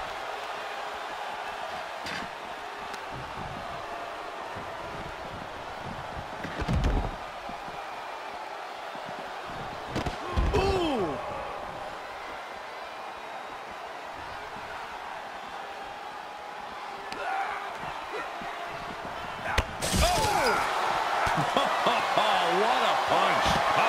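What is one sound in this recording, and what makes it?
A large crowd cheers steadily.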